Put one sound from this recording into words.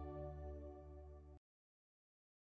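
An organ holds soft chords and fades out.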